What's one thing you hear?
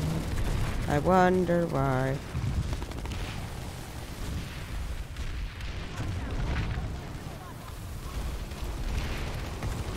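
Footsteps crunch quickly over sand.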